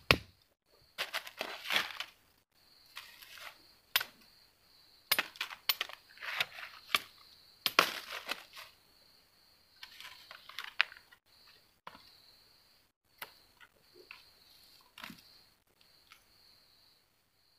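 Dry leaves and twigs rustle and crackle under hands.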